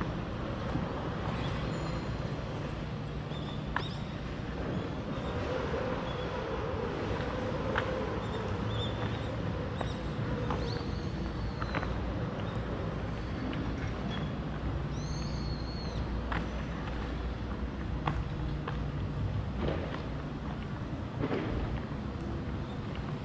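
Footsteps walk steadily on pavement outdoors.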